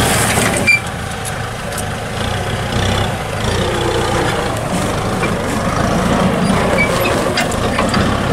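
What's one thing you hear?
Disc plough blades churn through soil.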